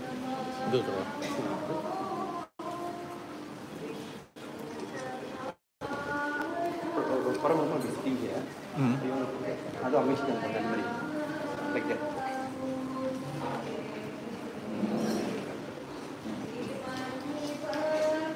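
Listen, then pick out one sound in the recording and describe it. An elderly man chants steadily close by.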